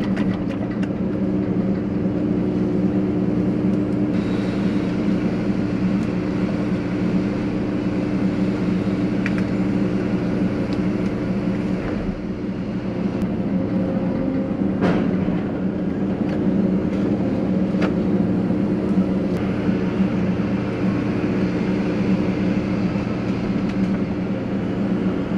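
A diesel engine hums steadily and loudly close by.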